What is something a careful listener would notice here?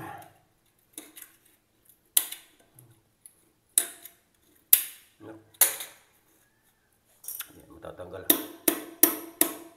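A metal tool scrapes and knocks against a ceramic base.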